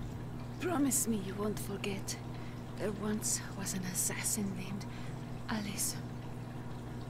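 A woman speaks softly and slowly, close up.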